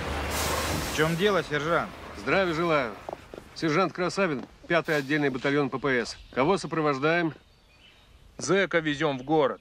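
A man speaks firmly and calmly, close by.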